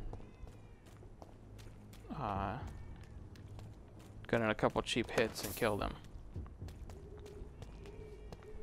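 Footsteps tap on wet stone at a steady walking pace.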